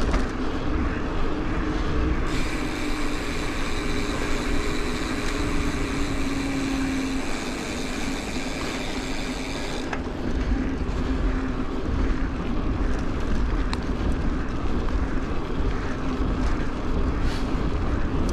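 Wind rushes steadily past while cycling outdoors.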